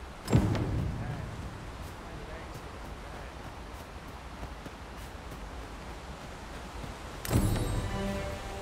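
Footsteps run steadily over grass and dirt.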